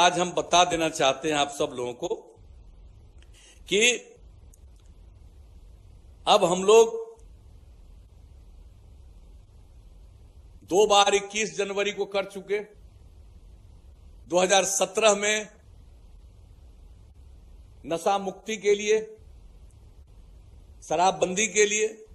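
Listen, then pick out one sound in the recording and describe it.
An elderly man speaks into a microphone in short phrases with long pauses, heard through a loudspeaker.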